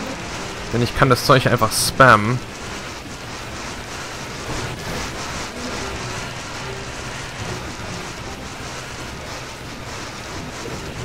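Magic blasts crackle and burst.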